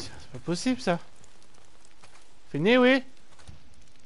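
A young man speaks briefly through a headset microphone, his voice rising in a drawn-out exclamation.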